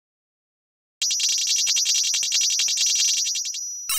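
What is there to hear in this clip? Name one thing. A bright, fast electronic game jingle rattles out in rapid beeps.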